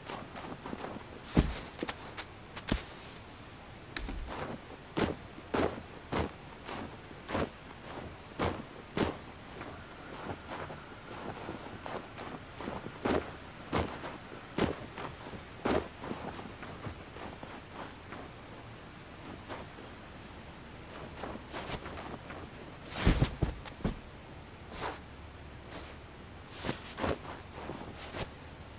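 Small footsteps crunch softly on snow.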